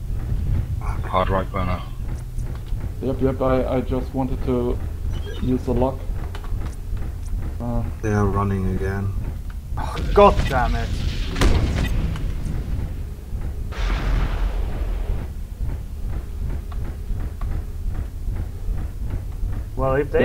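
A heavy mechanical walker stomps forward with a deep rumble.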